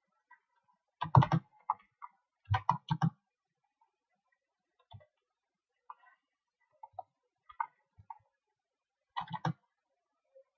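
Short game sound effects play in brief bursts.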